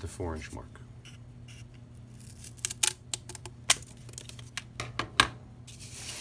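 Scissors snip through thick cardboard.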